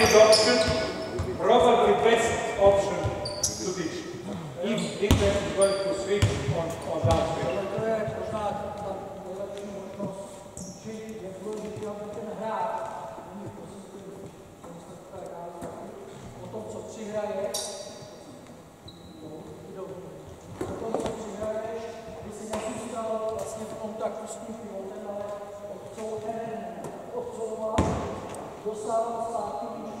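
A man speaks loudly with animation, echoing in a large hall.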